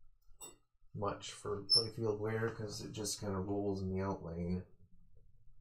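A man talks calmly through a microphone.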